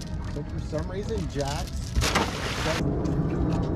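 An anchor splashes into the water.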